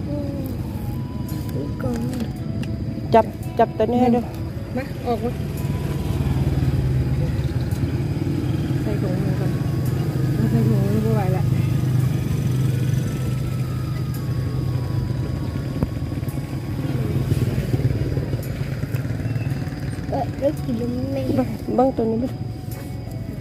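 A woman speaks casually nearby.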